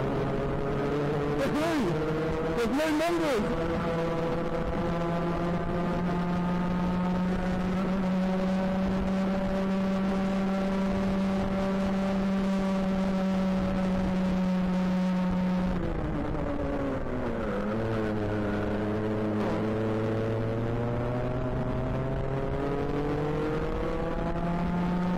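A kart engine buzzes loudly and close, its pitch rising and falling with speed.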